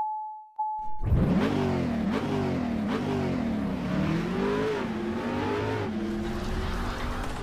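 A car engine revs hard, its pitch rising and falling with each gear change.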